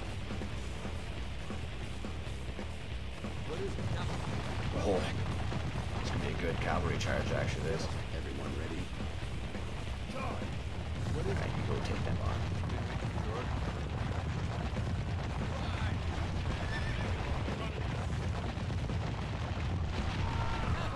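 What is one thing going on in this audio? Horses gallop across the ground.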